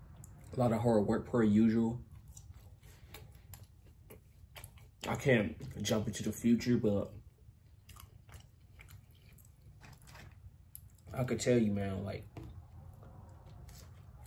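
A young man chews food with small clicking mouth sounds.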